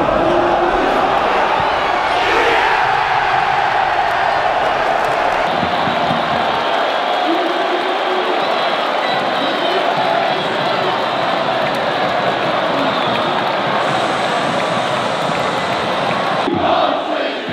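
A large stadium crowd roars and chants loudly.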